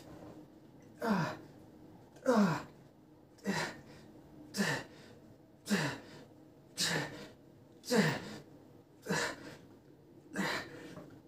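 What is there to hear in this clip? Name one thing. A man grunts loudly with each lift, close by.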